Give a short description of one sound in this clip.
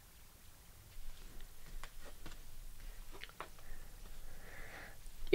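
Playing cards rustle and tap softly as a hand gathers them up.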